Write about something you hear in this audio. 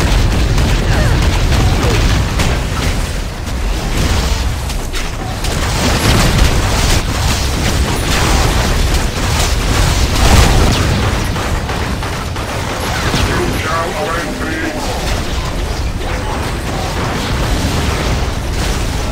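Fiery explosions roar and boom in rapid bursts.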